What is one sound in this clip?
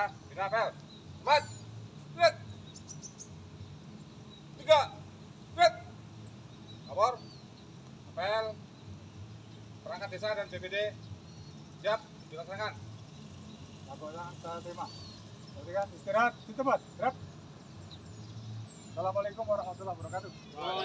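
A man shouts drill commands outdoors.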